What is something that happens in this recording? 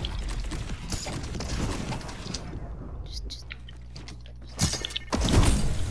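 Gunshots crack sharply in a video game.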